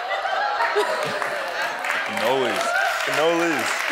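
A young woman laughs heartily close by.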